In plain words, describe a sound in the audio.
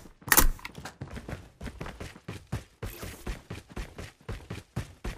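Footsteps run rhythmically on the ground.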